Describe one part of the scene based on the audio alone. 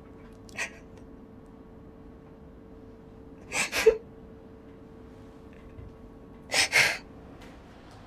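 A young woman sobs and gasps close by.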